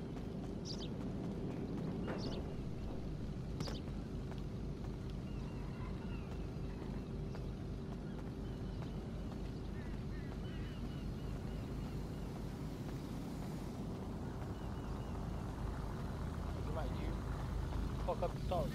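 Footsteps run across pavement.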